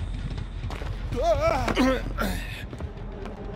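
A body scrambles through a window with a wooden knock.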